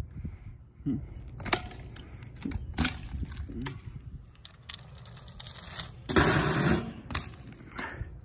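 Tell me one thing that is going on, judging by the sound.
A bicycle lands with hard knocks and clatters on pavement.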